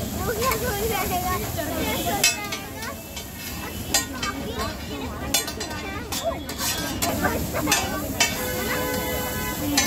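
A metal spatula scrapes and clanks on a hot griddle.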